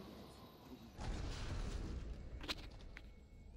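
Explosions roar loudly.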